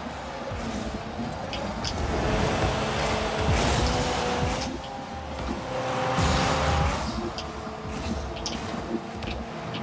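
A game car's rocket boost roars.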